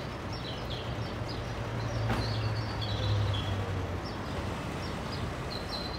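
A car engine rumbles and pulls away.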